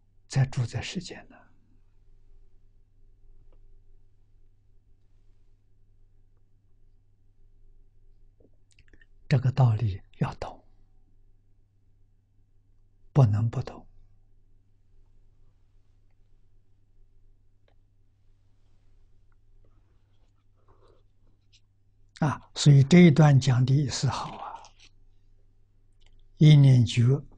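An elderly man speaks calmly into a close microphone, in short bursts with long pauses.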